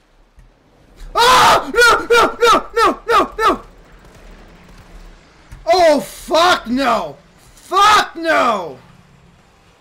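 A young man shouts loudly into a microphone.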